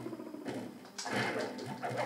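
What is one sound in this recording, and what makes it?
A cartoonish blow lands with a loud burst of game sound effects.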